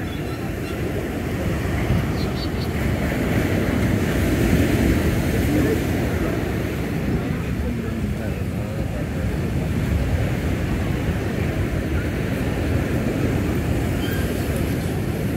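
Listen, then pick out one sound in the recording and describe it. Waves wash against a seawall nearby.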